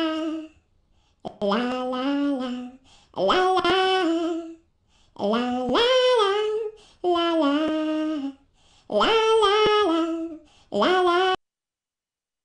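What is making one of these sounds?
A high, cartoonish voice sings a cheerful tune up close.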